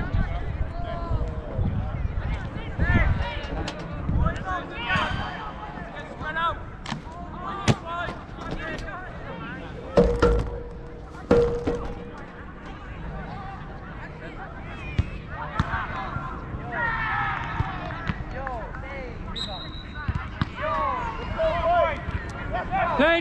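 Young men shout and call out to each other outdoors across an open field.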